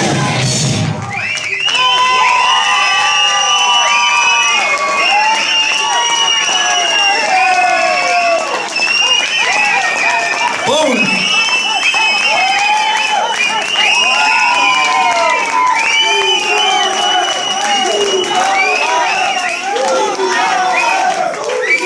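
A crowd cheers and whistles loudly.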